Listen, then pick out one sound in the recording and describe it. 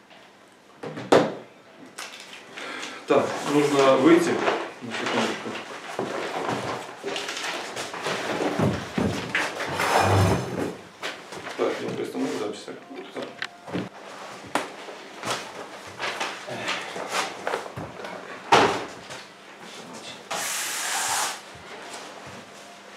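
Papers rustle and flap as they are leafed through.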